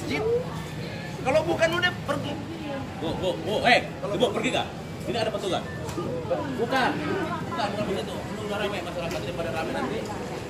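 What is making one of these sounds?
A crowd of men and women talk and shout over each other close by.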